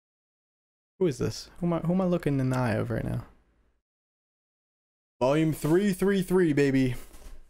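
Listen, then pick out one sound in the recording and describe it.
A young man speaks with animation into a close headset microphone.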